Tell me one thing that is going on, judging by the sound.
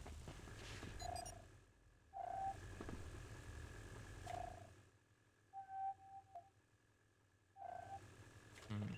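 Short electronic menu beeps sound several times.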